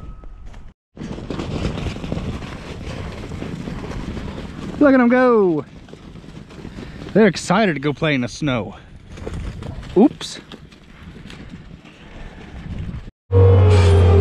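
Hooves thud and crunch through snow.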